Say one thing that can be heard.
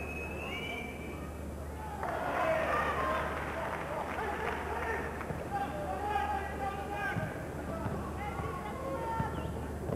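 A crowd in a large echoing arena cheers and roars.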